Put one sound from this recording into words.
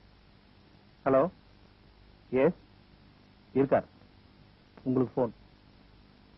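A man speaks briefly into a telephone.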